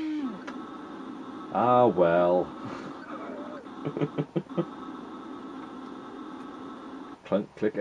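A retro video game plays bleeping electronic sound effects.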